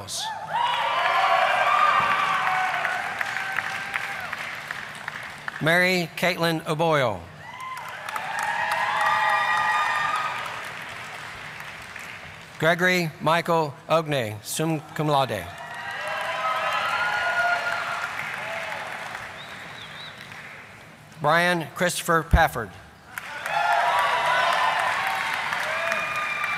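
An audience applauds and cheers in a large echoing hall.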